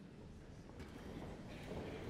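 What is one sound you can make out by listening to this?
Sheets of paper rustle close by.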